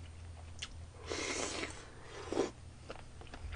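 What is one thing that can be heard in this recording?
A young man slurps food noisily.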